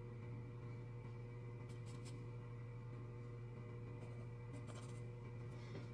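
A pencil scratches lightly on paper in short strokes.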